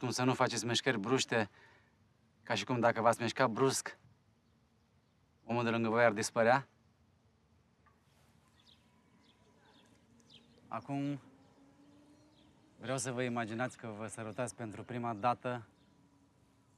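A man speaks calmly and clearly to a group, in pauses.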